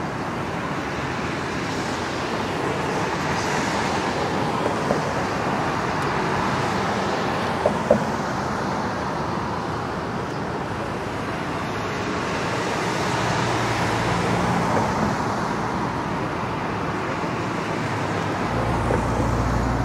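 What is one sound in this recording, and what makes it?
Steady city traffic hums in the distance.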